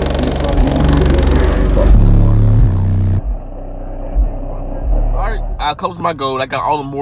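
Deep, heavy bass music booms loudly from car speakers.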